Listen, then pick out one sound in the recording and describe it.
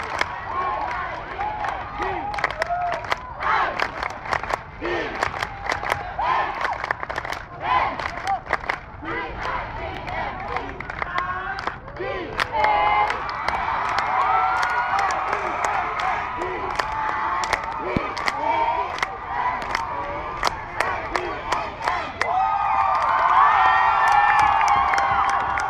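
A large crowd of young people cheers and shouts outdoors.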